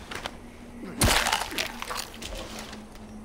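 A knife slices wetly into an animal carcass.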